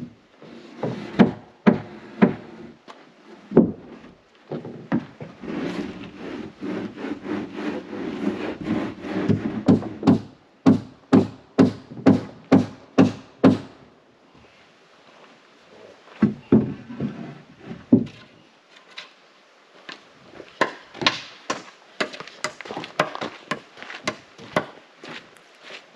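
A hammer strikes wood in quick, even blows.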